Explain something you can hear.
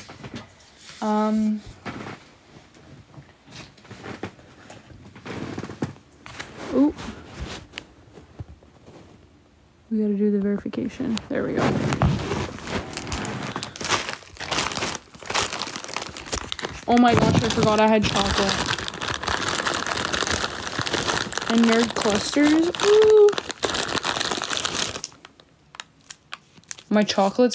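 A young woman talks casually, close to the microphone.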